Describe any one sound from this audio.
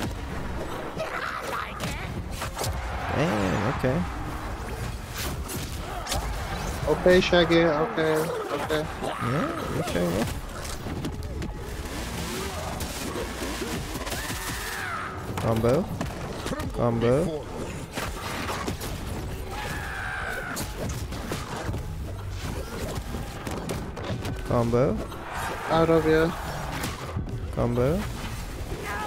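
Punches, blasts and impact effects from a video game fight go off again and again.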